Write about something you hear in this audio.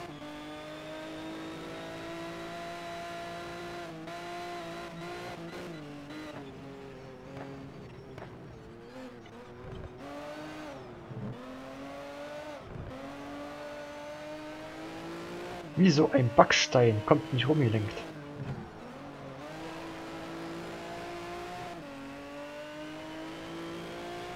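A race car engine screams at high revs and drops in pitch as it shifts down for corners.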